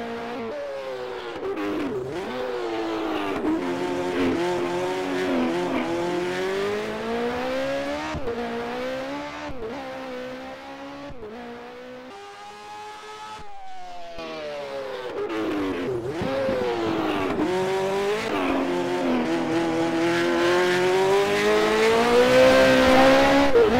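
A racing car engine roars loudly, revving up and down as gears change.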